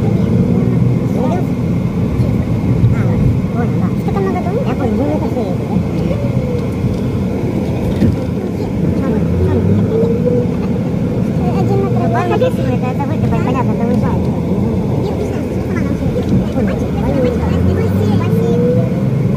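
A vehicle engine hums steadily.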